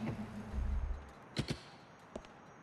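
A car door slams shut.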